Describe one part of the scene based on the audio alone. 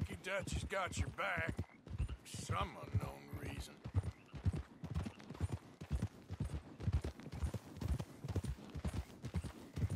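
A horse's hooves thud steadily on a dirt track.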